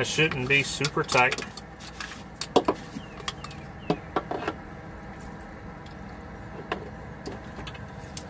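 Oil trickles and splashes into a drain pan.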